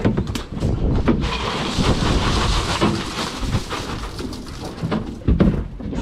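Ice rattles and hisses as it is tipped out of a bin.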